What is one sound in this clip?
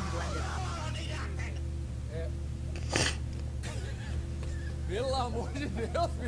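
Young men talk and laugh with animation over an online call.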